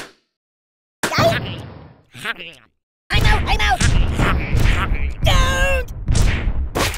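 Game explosions bang and crackle repeatedly.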